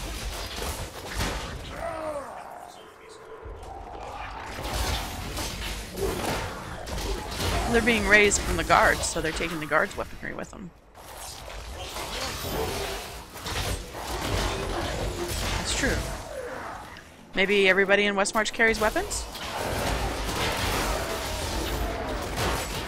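Game combat effects crackle and whoosh as spells strike.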